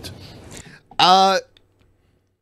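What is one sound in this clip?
A man makes a short drawn-out vocal sound over a microphone.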